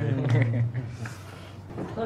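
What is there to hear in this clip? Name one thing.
Teenage boys talk and laugh together nearby.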